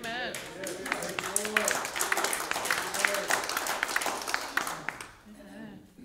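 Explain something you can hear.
An audience claps loudly in an echoing hall.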